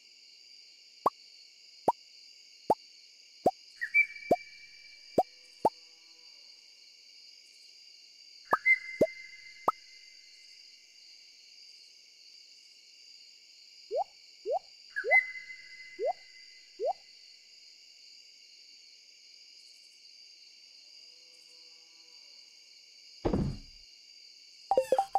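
Short game blips and pops sound as items are moved in an inventory.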